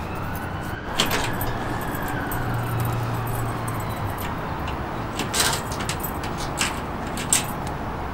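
Metal parts clank sharply a few times.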